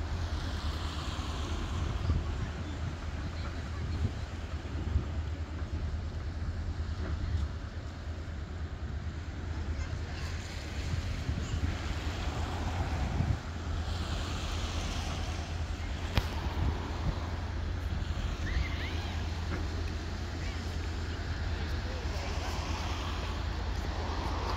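Small waves lap and splash on the water.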